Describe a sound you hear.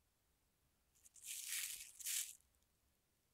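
A plastic sheet crinkles.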